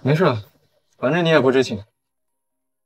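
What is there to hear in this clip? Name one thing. Another young man answers calmly, close by.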